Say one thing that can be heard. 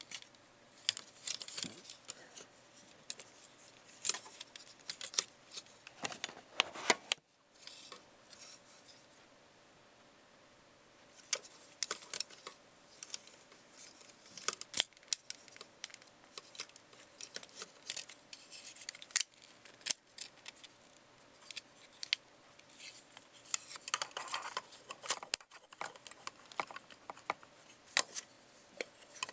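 Hands rub and rustle against hard plastic.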